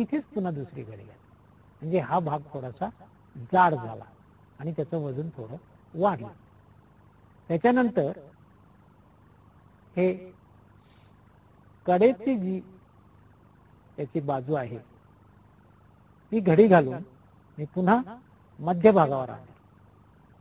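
A man speaks calmly and close into a microphone, in short phrases with pauses.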